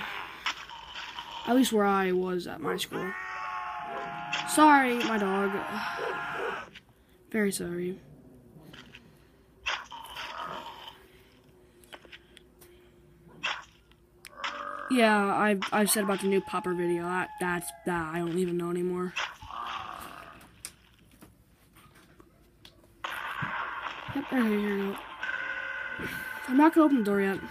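A video game plays through a small phone speaker.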